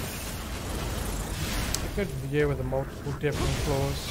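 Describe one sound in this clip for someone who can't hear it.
Flames crackle and whoosh.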